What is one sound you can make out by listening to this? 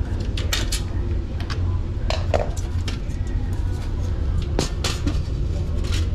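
A metal return grille rattles as it is lifted off.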